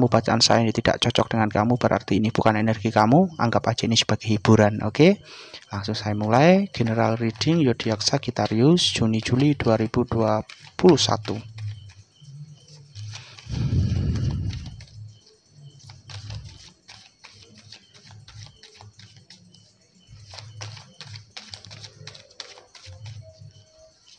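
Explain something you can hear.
Playing cards rustle and slide softly as they are handled.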